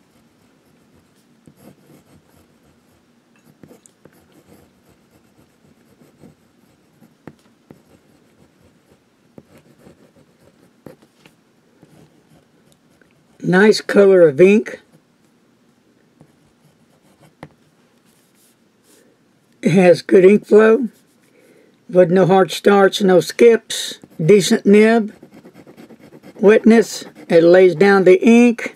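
A pen nib scratches softly across paper.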